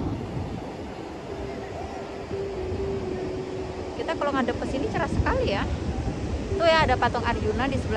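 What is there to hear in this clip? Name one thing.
Waves wash onto the shore with a steady rush.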